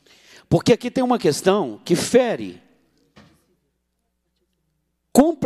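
A middle-aged man speaks emphatically into a microphone.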